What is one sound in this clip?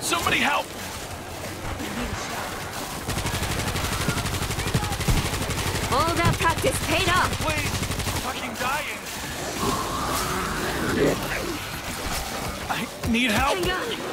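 Zombies snarl and shriek close by.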